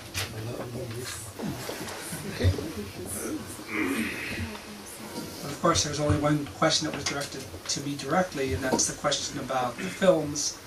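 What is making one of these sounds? A man speaks into a microphone, heard through a loudspeaker in an echoing room.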